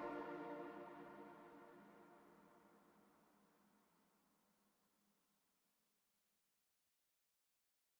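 Game music plays and slowly fades out.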